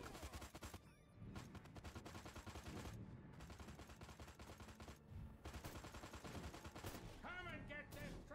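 Rapid gunfire crackles and booms in a video game.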